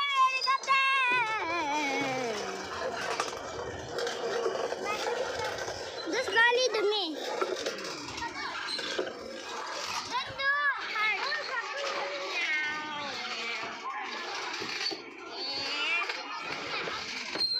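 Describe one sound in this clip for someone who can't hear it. A young boy babbles and squeals playfully close by.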